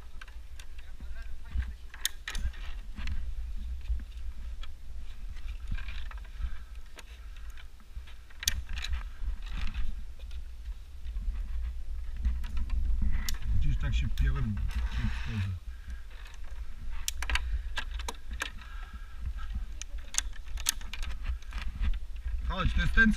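Hands and shoes knock and scrape against wooden rungs.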